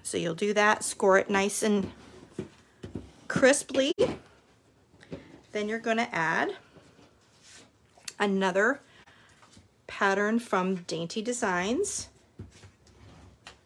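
Card stock rustles and slides as it is folded and handled.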